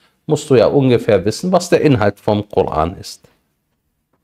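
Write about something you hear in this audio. A man speaks clearly and with emphasis, close to a microphone.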